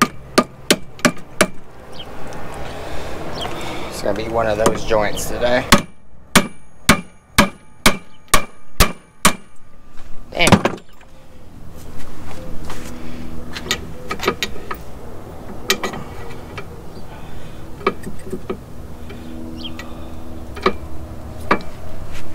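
Metal tapping knocks sharply on metal, again and again.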